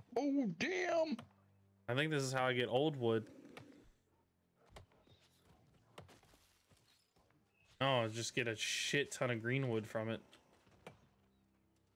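A pickaxe chops at a fallen tree trunk with dull knocks.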